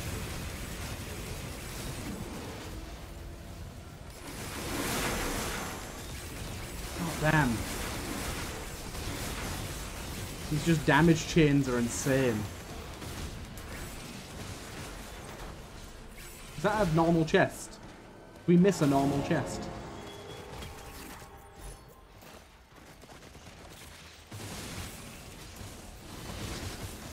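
Video game weapons fire and explode in rapid bursts.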